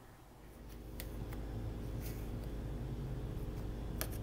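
A rubber door seal is pressed into place with soft thuds.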